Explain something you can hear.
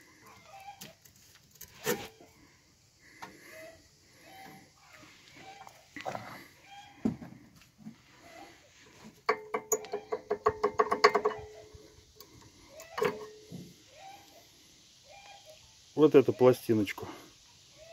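Metal brake parts clink and rattle.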